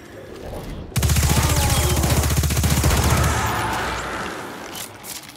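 A rapid-fire gun shoots in quick bursts with loud booming blasts.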